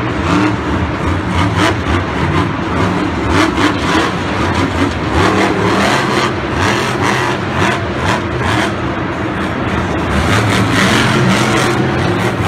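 A monster truck engine roars loudly, revving up and down.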